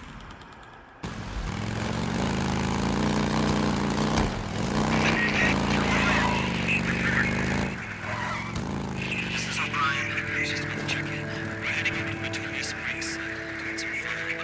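A motorcycle engine rumbles and revs as the bike rides along.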